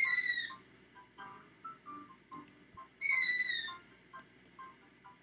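A game's countdown timer beeps in short electronic tones.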